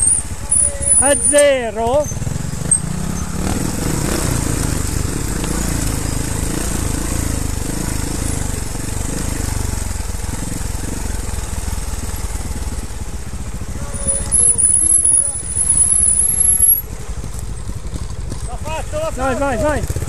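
A motorcycle engine revs up sharply in short bursts.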